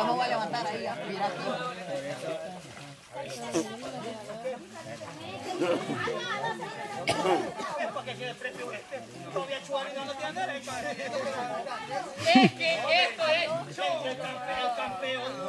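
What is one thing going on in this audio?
Men wade and splash through water.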